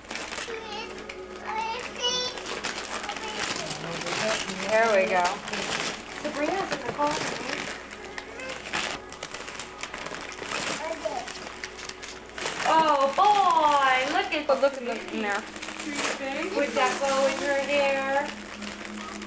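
A woman talks nearby in a lively, high voice.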